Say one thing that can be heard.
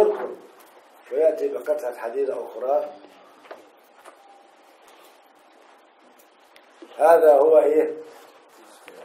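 An elderly man speaks calmly and slowly into a close microphone, with pauses.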